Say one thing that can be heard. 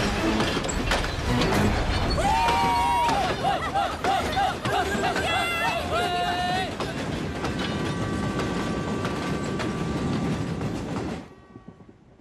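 A passenger train rumbles over a steel bridge.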